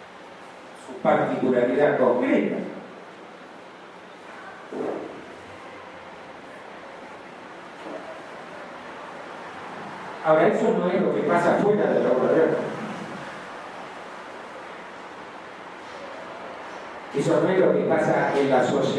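An elderly man speaks calmly through a microphone and loudspeakers in a room with some echo.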